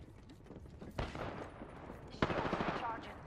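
Gunshots crack nearby.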